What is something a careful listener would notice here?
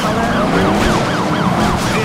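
A car crashes with a loud metallic bang.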